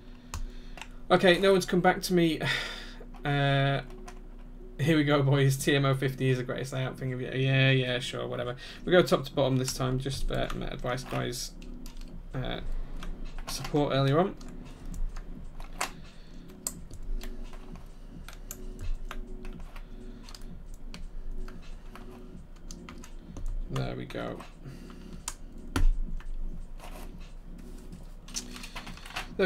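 Fingers type on a mechanical keyboard with soft clacking keys.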